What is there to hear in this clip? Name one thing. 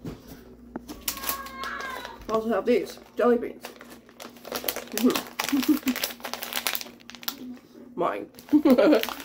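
A plastic snack bag crinkles.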